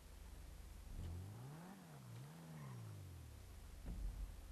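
A car engine revs up and down twice.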